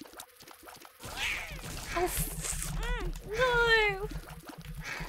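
Electronic game sound effects squeal and chirp.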